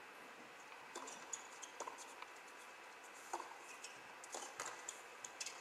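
Tennis rackets strike a ball back and forth with sharp pops.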